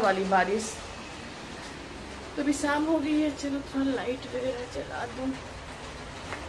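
A middle-aged woman speaks close by with animation.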